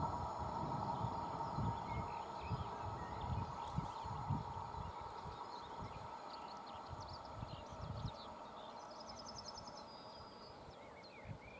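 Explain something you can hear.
An electric train hums in the distance and slowly fades away.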